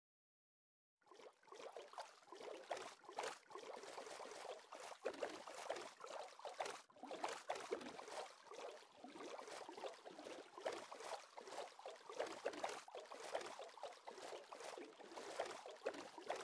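Oars splash in water as a small boat is rowed along.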